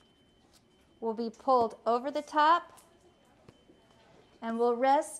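A woman speaks calmly and clearly, close to the microphone.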